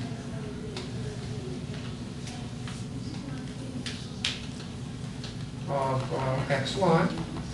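A pen taps and scratches on a tablet.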